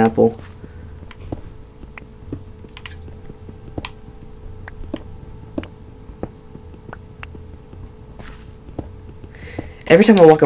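A pickaxe chips at stone in quick, steady taps.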